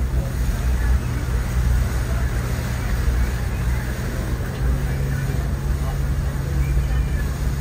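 Wind buffets loudly across open water.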